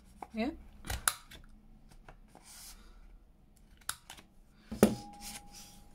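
A paper punch clicks sharply.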